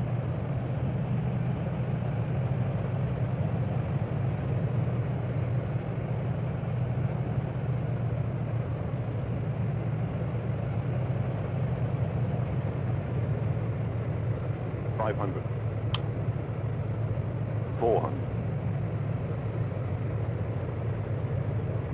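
A jet airliner's engines drone steadily.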